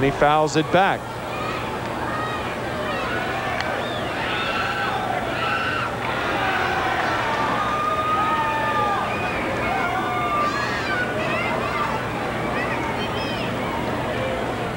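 A large crowd cheers and whistles in a stadium.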